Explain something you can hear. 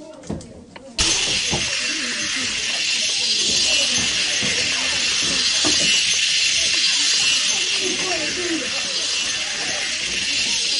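A magic trail shimmers and hisses steadily.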